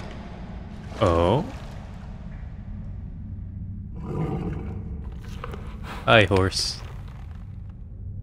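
A horse snorts and whinnies close by.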